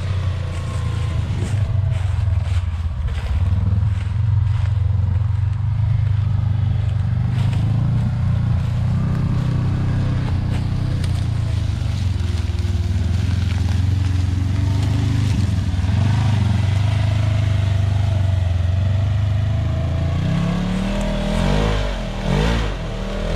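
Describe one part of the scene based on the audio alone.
Tyres crunch over dry leaves.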